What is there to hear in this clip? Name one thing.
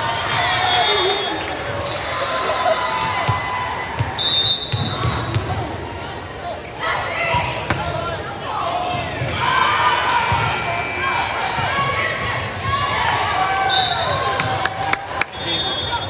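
A volleyball is struck with sharp smacks in an echoing hall.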